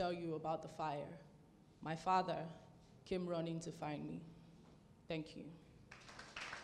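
A young woman speaks with feeling into a microphone.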